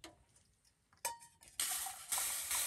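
A metal kettle clinks against a cup.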